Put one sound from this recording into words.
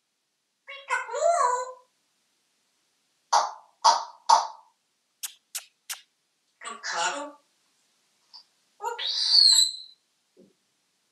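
A parrot squawks and chatters in a small echoing room.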